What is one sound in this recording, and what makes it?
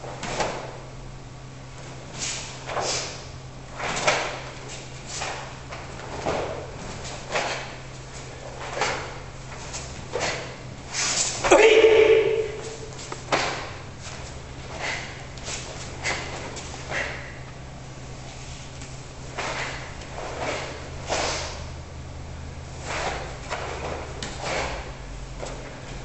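A karate uniform snaps sharply with each quick strike and block.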